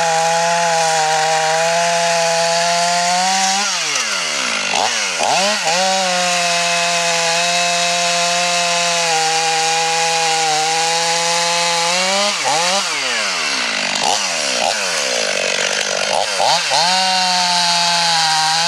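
A chainsaw engine roars loudly while cutting into wood, its pitch dipping and rising as it revs.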